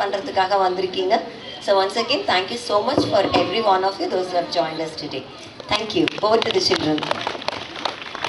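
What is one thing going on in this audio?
A young woman speaks clearly into a microphone, heard through a loudspeaker outdoors.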